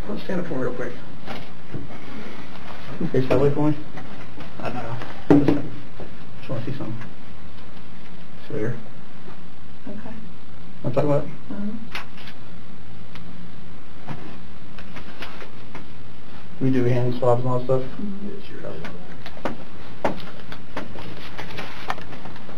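A man speaks calmly nearby, giving instructions and asking questions.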